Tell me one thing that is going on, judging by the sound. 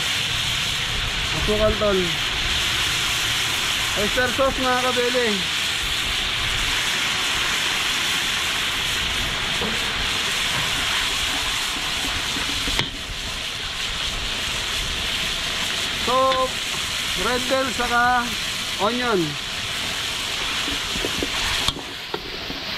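Sauce sizzles in a wok.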